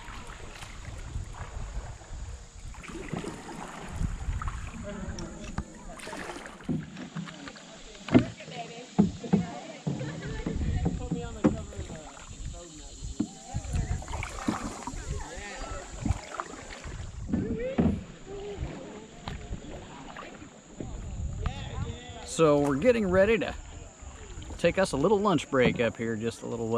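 Paddles splash and dip in calm water.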